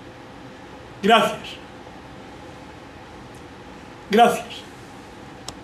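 An elderly man laughs briefly.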